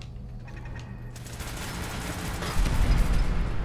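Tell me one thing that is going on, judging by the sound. A laser rifle fires with a buzzing zap.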